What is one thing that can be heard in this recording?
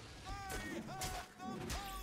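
A magical blast bursts with a crackle.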